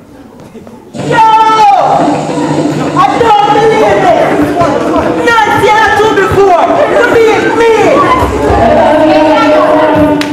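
A group of young performers sings loudly together.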